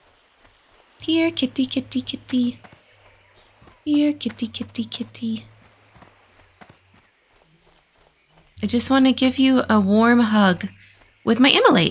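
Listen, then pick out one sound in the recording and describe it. A young woman speaks with animation, close into a microphone.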